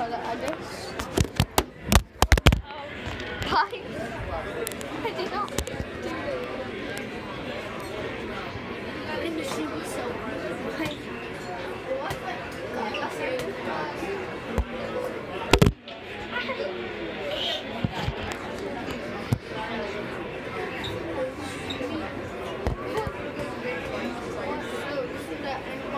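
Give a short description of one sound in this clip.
Many people chatter in a busy, murmuring room.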